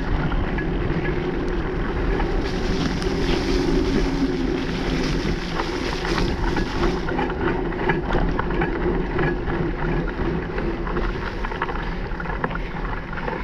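Tyres roll and crunch over a bumpy dirt trail.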